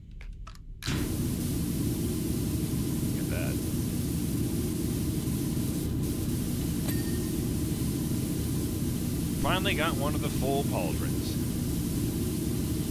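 A pressure washer sprays water in a steady, hissing rumble.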